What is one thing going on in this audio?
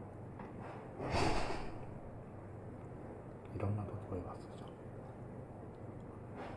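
A man hums with pleasure while chewing.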